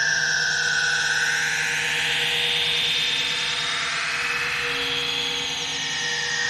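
Electronic synthesizer music plays steadily, with sweeping high tones and a steady hum.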